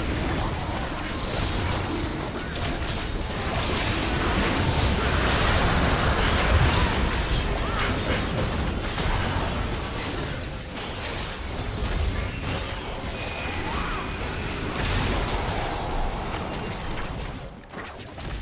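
Spell blasts and weapon hits crackle and boom in a busy video game battle.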